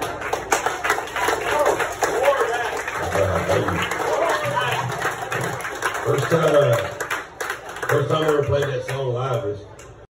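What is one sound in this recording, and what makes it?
A man sings into a microphone through a loudspeaker.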